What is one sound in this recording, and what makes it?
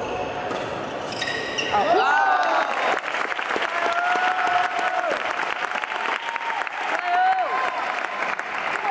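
A badminton racket smacks a shuttlecock.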